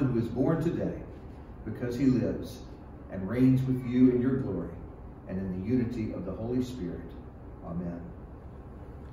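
A middle-aged man speaks calmly through a microphone in a slightly echoing room.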